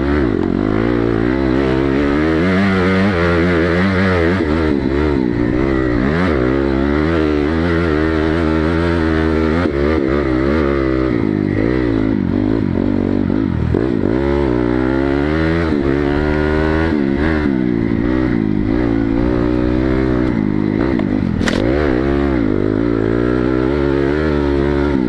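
A dirt bike engine revs up and down loudly, close by.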